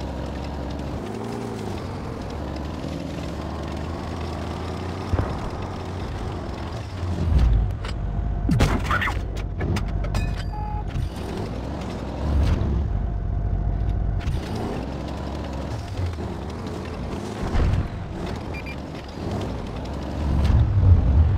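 A heavy tank's engine rumbles as the tank drives.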